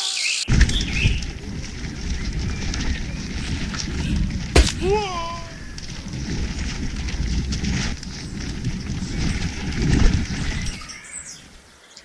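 Bicycle tyres rumble over rough dirt.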